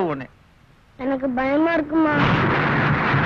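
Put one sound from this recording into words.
A young child cries out in a high voice.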